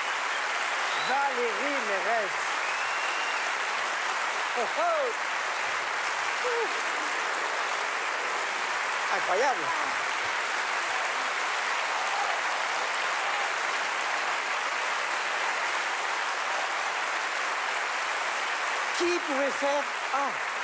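A large audience cheers and whoops.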